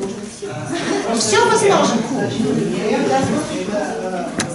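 Several people talk over one another.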